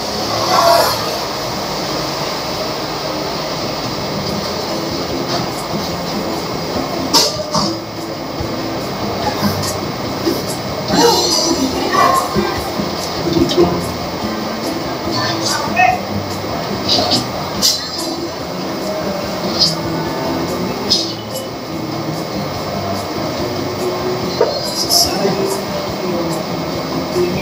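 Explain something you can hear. A woman talks softly and close by.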